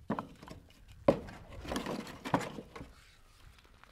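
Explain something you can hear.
A wooden board knocks against another board.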